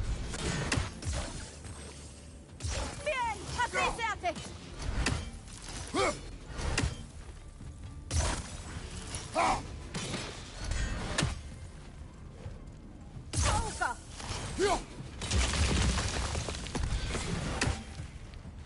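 A thrown axe strikes with heavy, ringing thuds.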